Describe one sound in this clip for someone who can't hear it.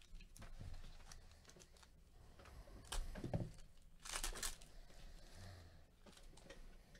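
A foil card pack crinkles and rustles as hands tear it open.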